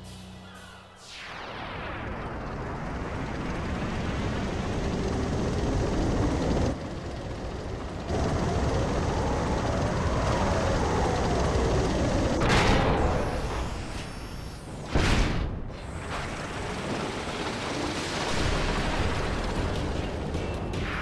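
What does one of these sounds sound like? A huge machine rumbles and grinds heavily as it rises.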